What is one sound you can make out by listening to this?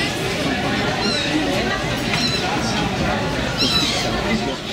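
Gulls call out over the water.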